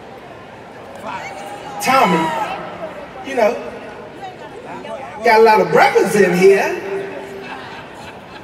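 A man speaks into a microphone with animation, heard through loudspeakers in a large echoing hall.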